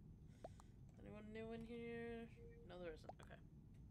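A young man speaks close to a microphone, drawing out his words in a sing-song way.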